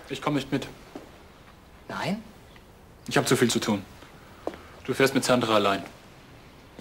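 A man in his thirties speaks in a low, serious voice nearby.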